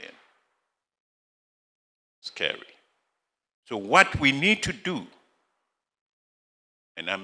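A middle-aged man speaks into a microphone in short bursts, with pauses between them.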